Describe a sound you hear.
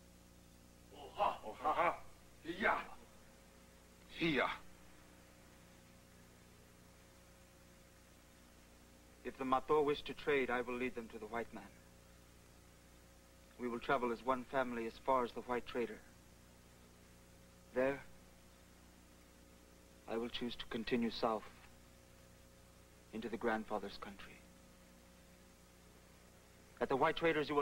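A man speaks slowly and calmly, with long pauses.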